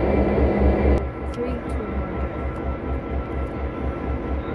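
A diesel locomotive engine rumbles and throbs steadily as a train approaches.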